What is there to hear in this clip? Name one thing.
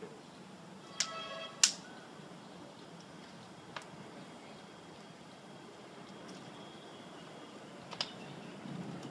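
A plastic bottle crinkles in a man's hands.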